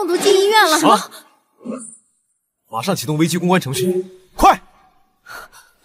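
A young man asks sharply and gives urgent orders.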